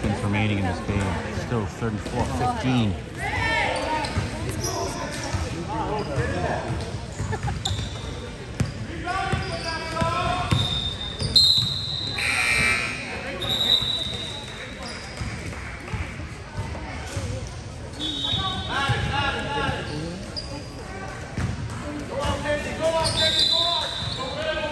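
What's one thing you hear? People nearby chat and call out with animation, echoing in the hall.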